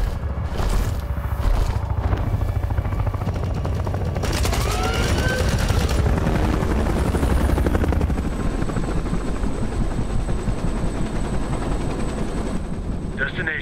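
A helicopter engine drones loudly.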